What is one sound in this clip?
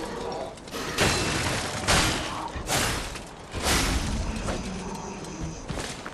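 A sword swishes and clangs in a fight.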